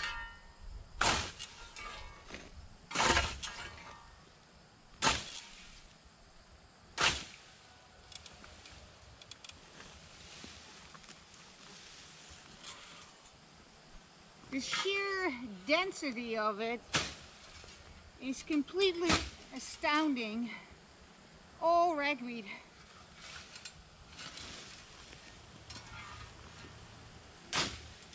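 A scythe swishes sharply through tall grass.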